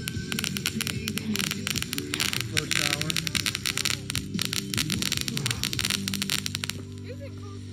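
Fireworks fountains hiss and crackle loudly outdoors.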